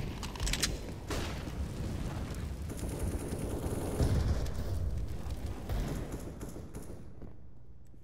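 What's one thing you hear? Fire roars and crackles nearby.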